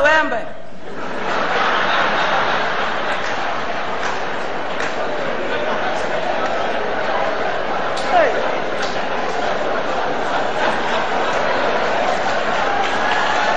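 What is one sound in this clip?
A large crowd cheers and murmurs noisily.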